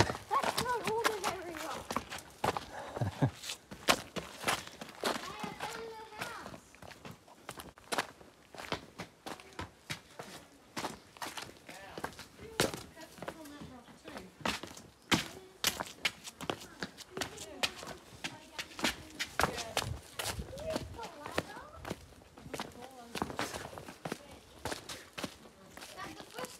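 Footsteps crunch and scrape on a rocky trail.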